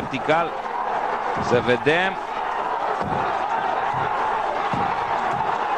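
An axe chops into a wooden log with heavy thuds.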